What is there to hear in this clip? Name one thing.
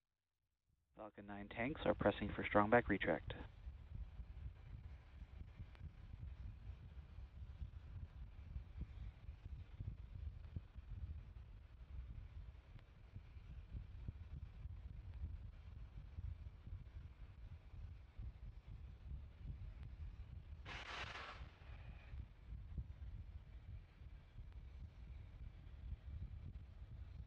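A rocket vents vapour with a steady low rush from far off.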